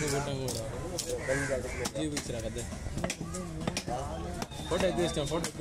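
A knife chops and scrapes on a wooden block.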